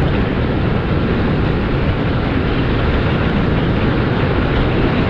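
Wind roars loudly across an open space.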